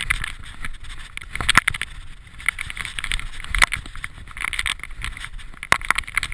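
A mountain bike rattles and clatters over rocky ground.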